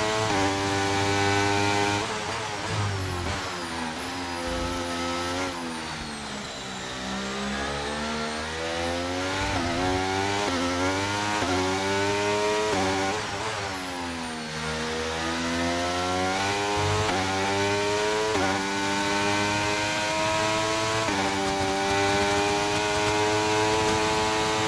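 A racing car engine whines loudly, its pitch rising and falling through the gears.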